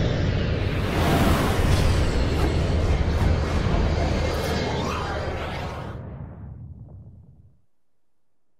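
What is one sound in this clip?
A second blast booms and slowly fades away.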